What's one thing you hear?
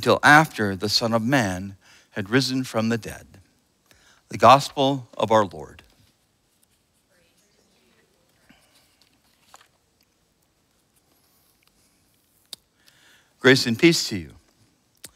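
A middle-aged man speaks calmly through a microphone in an echoing room.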